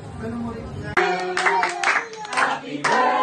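A crowd of people cheers and shouts loudly.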